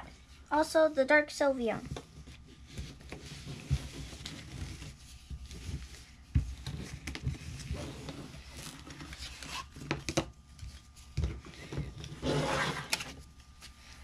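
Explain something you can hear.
Playing cards slide and rustle across a soft mat.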